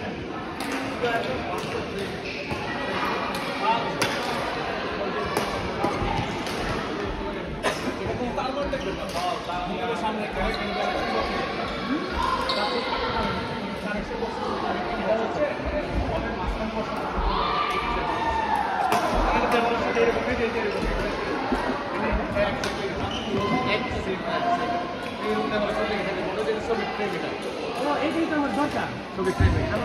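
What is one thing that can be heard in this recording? Young men talk and call out nearby in an echoing hall.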